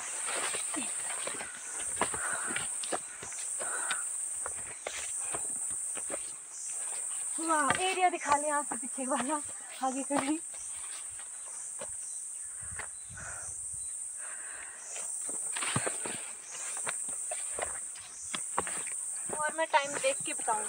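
Footsteps crunch and rustle on grass and stony ground.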